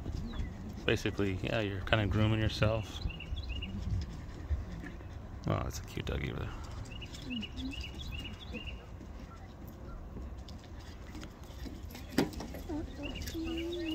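A small animal munches grass close by.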